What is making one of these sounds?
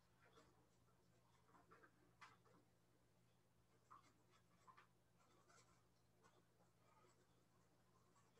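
A stiff brush scrapes and taps softly on a painting surface.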